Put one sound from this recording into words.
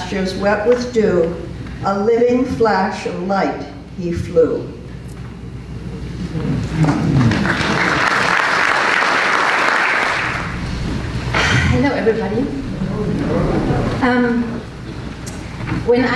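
A woman speaks calmly through a microphone in a large echoing hall.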